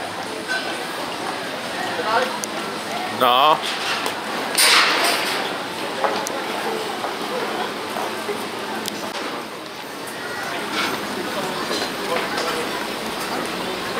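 A crowd murmurs and chatters on a busy street outdoors.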